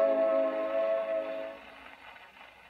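Music plays from an old gramophone record, then fades out.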